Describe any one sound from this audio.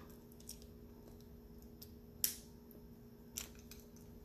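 Small objects click softly in a woman's hands.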